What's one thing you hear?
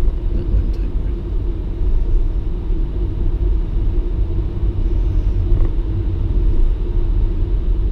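Tyres rumble over a metal ramp.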